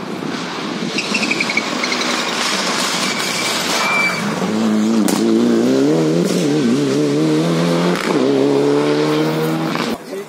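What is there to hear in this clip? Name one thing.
A second rally car engine approaches and roars past, revving through the gears.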